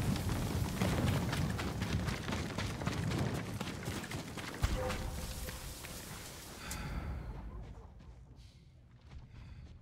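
Wind blows with a low rumble.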